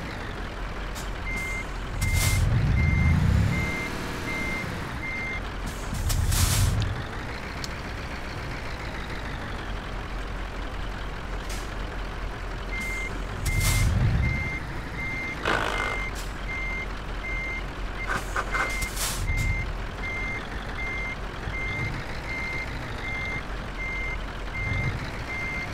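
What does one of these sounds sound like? A truck engine rumbles low and steadily.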